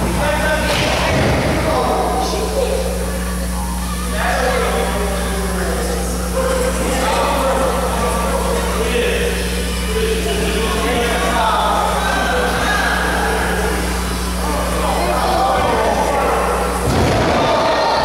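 A wrestler's body thuds onto the ring mat.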